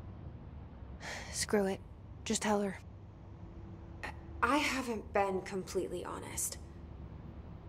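A woman speaks calmly and quietly, close by.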